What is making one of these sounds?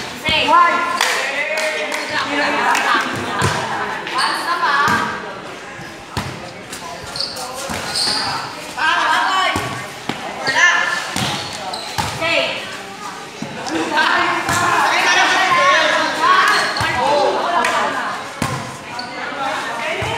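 Young women shout and call out to each other outdoors during a volleyball game.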